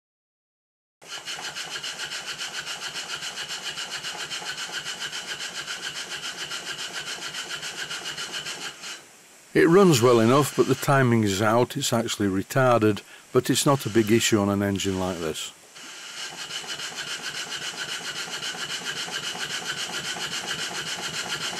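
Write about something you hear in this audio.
A small steam engine runs with a fast, steady chuffing.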